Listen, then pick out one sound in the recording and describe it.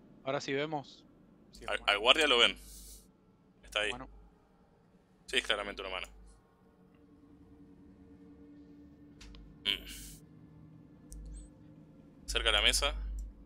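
A man speaks with animation through a headset microphone over an online call.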